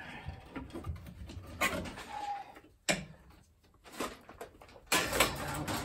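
A metal panel clunks as it is lifted and set down.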